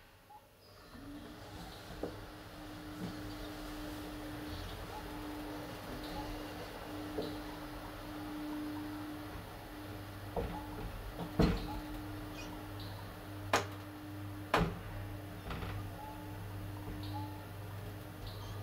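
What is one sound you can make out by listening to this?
An elevator motor hums steadily as the car moves.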